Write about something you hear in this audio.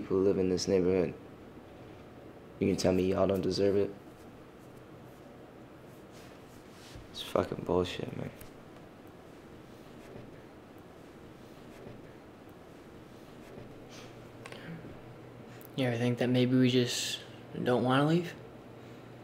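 A young man speaks quietly and calmly, close by.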